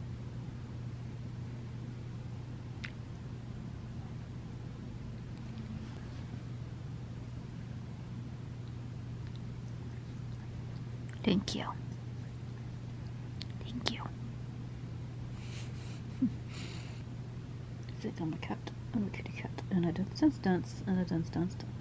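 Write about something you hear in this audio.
A hand strokes a cat's fur.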